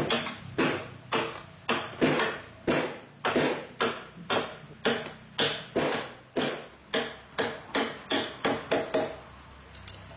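Heavy blows pound a wooden beam into a joint in a quick, steady rhythm.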